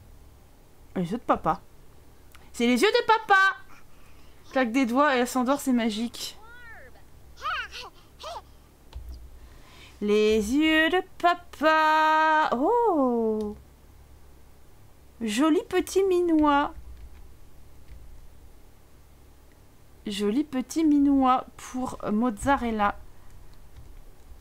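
A young woman talks with animation close to a microphone, in bursts with pauses.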